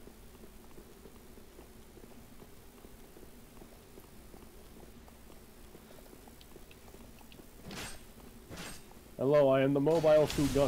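Armored footsteps clank on stone steps.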